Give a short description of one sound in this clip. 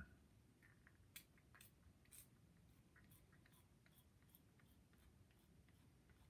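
A man sprays a spray bottle into his mouth.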